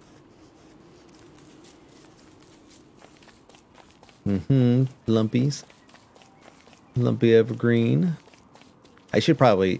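Footsteps patter softly on the ground.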